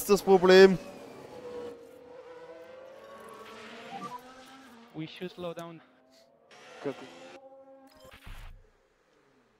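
A racing car engine hums faintly as the car drives.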